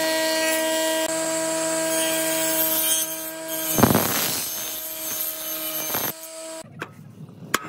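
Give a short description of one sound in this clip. A table saw hums loudly as it rips through wood.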